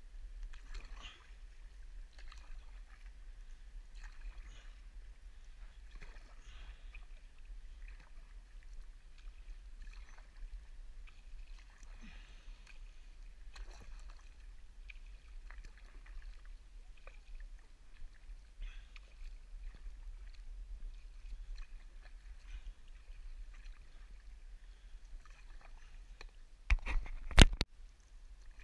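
A paddle dips and swishes through calm water in a steady rhythm.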